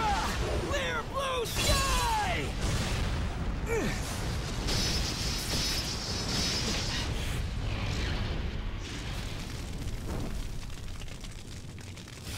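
A blade slashes through the air with a sharp swish.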